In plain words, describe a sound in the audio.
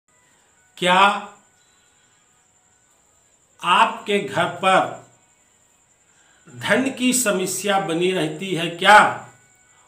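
An elderly man speaks with animation close to a microphone, in short bursts with pauses.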